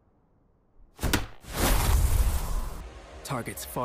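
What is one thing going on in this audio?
A magical whoosh bursts out with a bright hum.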